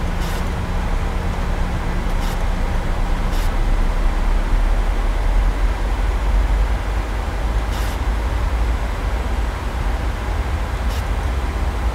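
A jet airliner's engines drone steadily from inside the cockpit.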